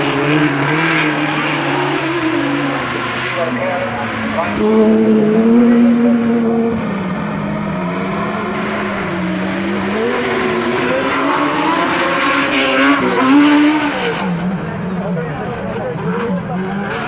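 Racing buggy engines roar and rev loudly, rising and falling in pitch.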